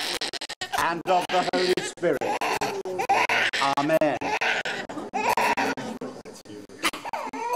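A baby cries loudly.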